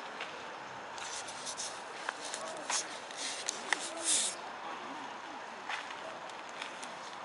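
A cloth bag brushes and rustles close by.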